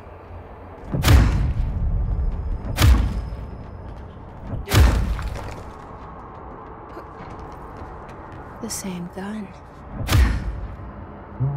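Heavy stone blocks crash and rumble with deep booms.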